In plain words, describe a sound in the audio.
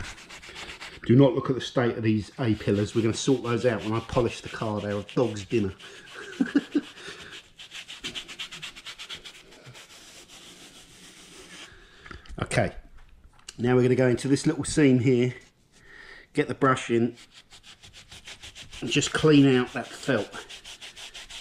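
A cloth rubs softly against a rubber window seal.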